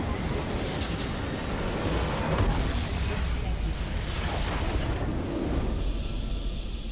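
Spell blasts and explosions crash loudly in a game battle.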